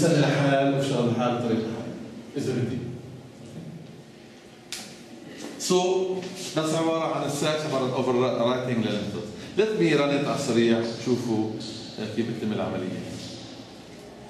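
A man lectures nearby, speaking calmly and clearly.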